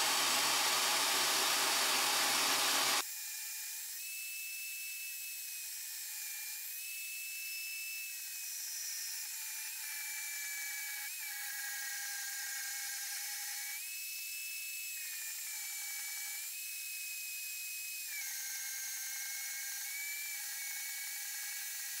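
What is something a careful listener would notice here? A band saw cuts through steel.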